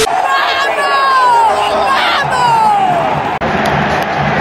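A young woman screams with excitement close by.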